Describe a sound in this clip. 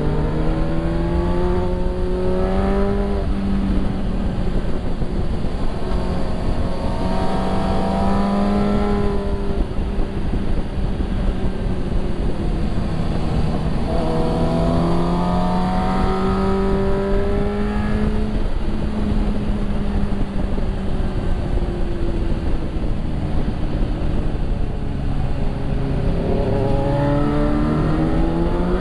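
Wind rushes past loudly throughout.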